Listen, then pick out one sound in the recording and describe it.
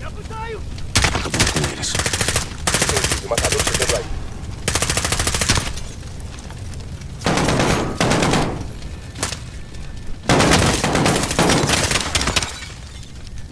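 Rifles fire in loud, rapid bursts.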